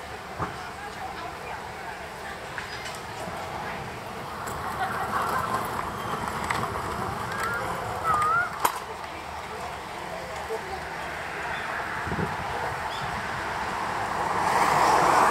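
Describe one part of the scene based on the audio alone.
People chatter faintly in the distance outdoors.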